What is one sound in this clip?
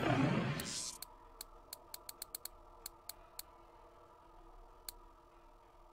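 Soft menu clicks tick in quick succession.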